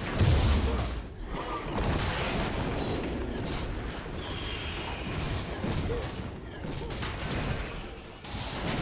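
Magic spells blast and crackle in a video game fight.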